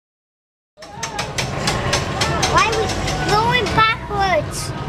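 Tram wheels clack over rail joints.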